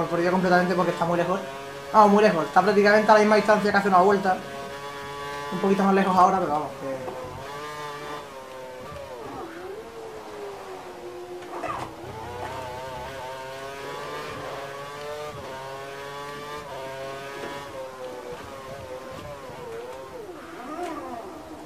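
A racing car engine roars and whines, rising and falling in pitch as gears shift.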